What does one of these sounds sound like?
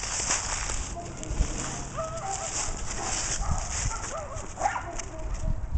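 A dog's paws rustle through dry leaves.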